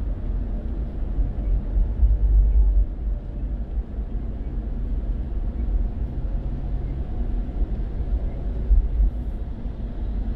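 Tyres hiss over a wet road.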